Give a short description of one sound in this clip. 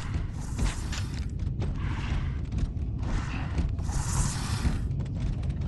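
Heavy armoured footsteps thud on a hard floor.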